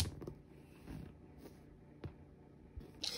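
Dice clatter and roll on a tabletop.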